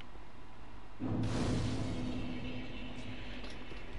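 A bonfire ignites with a rushing whoosh.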